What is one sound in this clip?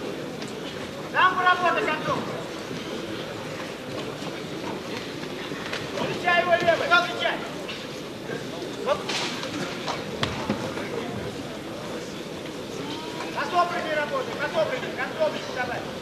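A seated crowd murmurs in a large hall.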